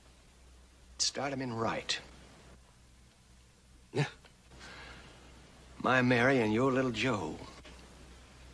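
An older man speaks calmly nearby.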